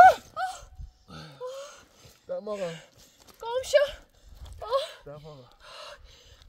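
A young man sobs loudly close by.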